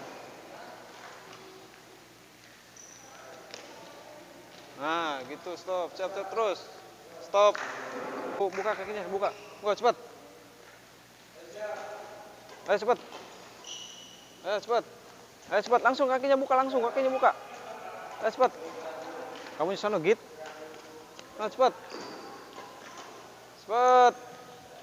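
Sports shoes squeak and patter on a court floor.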